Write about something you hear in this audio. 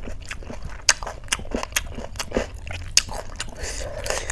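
Fingers squish and mix wet food close to a microphone.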